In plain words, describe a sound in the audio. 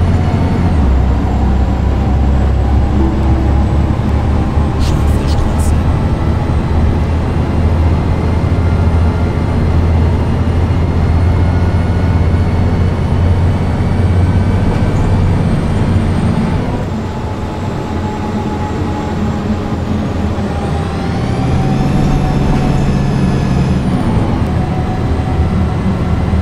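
A bus engine hums and rumbles steadily as the bus drives along.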